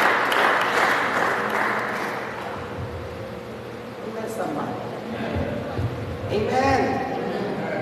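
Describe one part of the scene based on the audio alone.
A man speaks into a microphone with animation, heard through loudspeakers in a large echoing hall.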